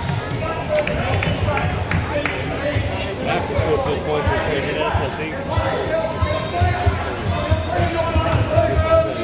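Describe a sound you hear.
A crowd of spectators chatters and calls out.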